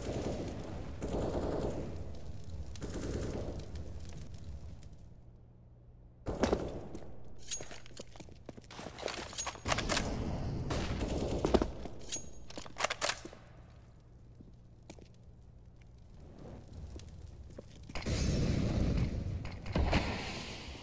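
Footsteps run on hard stone floors.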